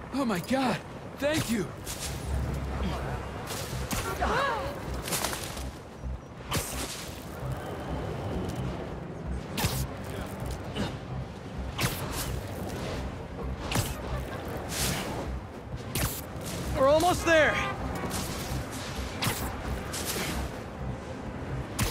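Air whooshes in short rushes as a figure swings quickly through the air.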